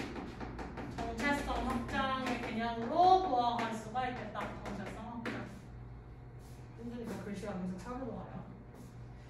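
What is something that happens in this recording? A young woman speaks calmly, nearby.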